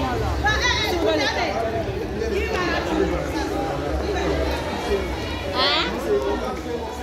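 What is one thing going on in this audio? A young woman shouts and laughs excitedly close by.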